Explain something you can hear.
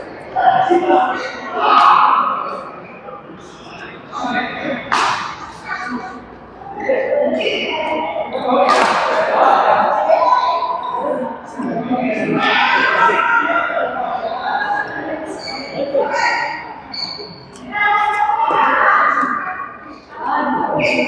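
Badminton rackets strike a shuttlecock in an echoing hall.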